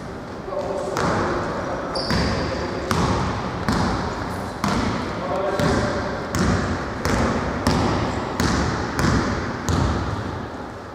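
A basketball bounces on a wooden floor in an echoing hall.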